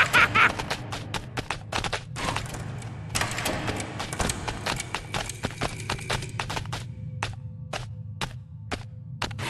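Goat hooves clatter on a wooden floor.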